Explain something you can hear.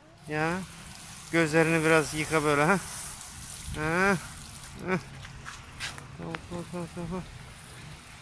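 A garden hose sprays water in a soft hiss.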